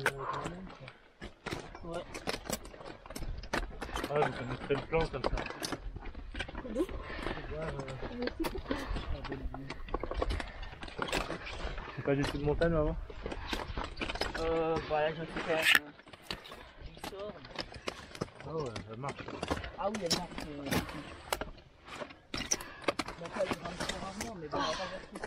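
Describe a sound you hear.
Metal climbing gear clinks and rattles.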